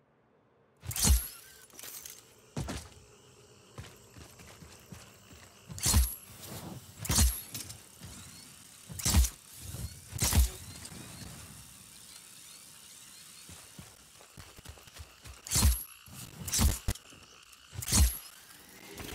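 Gunshots fire in sharp single bursts.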